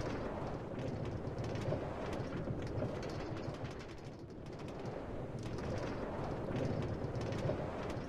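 A cart rumbles and rattles steadily along metal rails.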